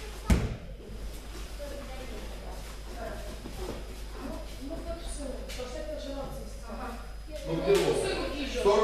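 Men talk in the distance in a large echoing hall.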